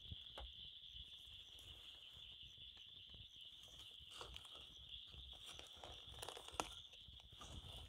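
A small fire crackles and pops.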